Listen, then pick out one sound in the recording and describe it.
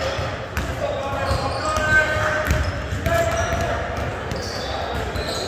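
A basketball thumps on the court.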